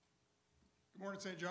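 A man speaks loudly through a microphone.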